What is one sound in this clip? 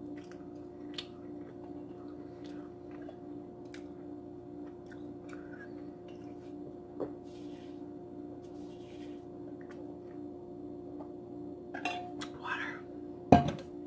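A woman sips a drink through a straw close by.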